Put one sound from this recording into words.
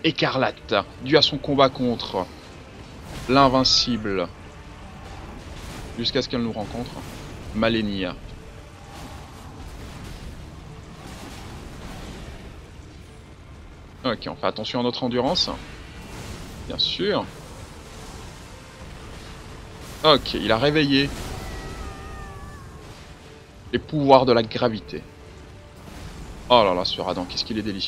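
Heavy blades clash and strike in a fight.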